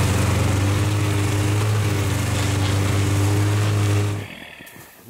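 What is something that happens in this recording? A snowmobile engine drones steadily close by, then cuts out.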